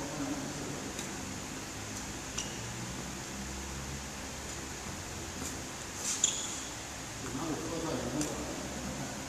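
A badminton racket strikes a shuttlecock with sharp pops in an echoing hall.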